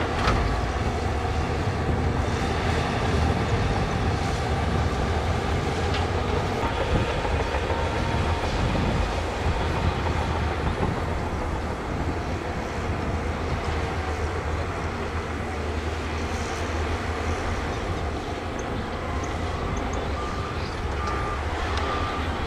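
Heavy diesel engines rumble steadily outdoors.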